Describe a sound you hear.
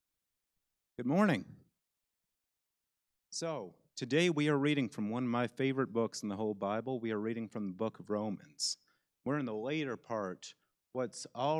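A young man speaks calmly into a microphone, heard through a loudspeaker in a large room.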